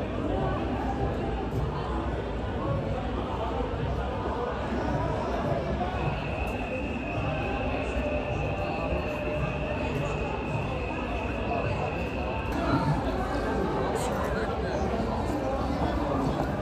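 A crowd of young people chatters outdoors in the street.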